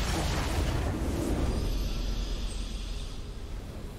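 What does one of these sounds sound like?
A triumphant game fanfare swells.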